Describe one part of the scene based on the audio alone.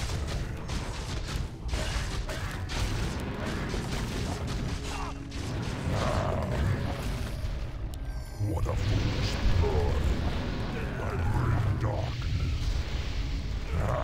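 Weapons clash and hit repeatedly.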